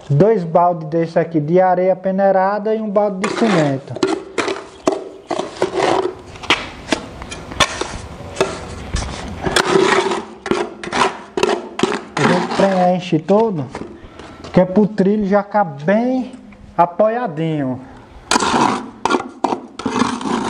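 A trowel scrapes wet mortar in a metal bucket.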